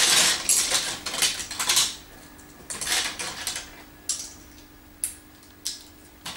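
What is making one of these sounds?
Plastic toy bricks rattle and clack close by.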